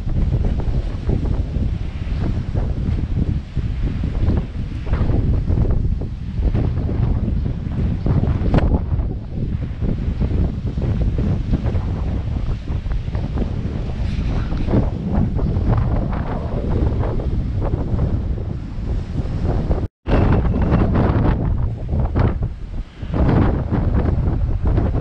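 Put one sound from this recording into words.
Strong wind buffets loudly outdoors.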